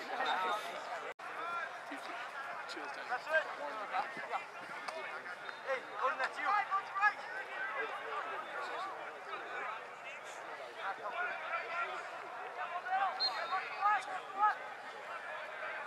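A crowd of young women shout and cheer across an open outdoor field.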